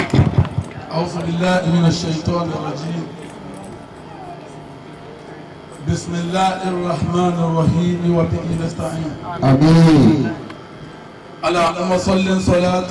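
A man chants loudly through a microphone and loudspeaker outdoors.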